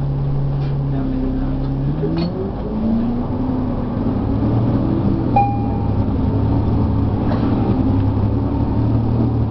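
An articulated diesel city bus pulls away, its engine rising in pitch.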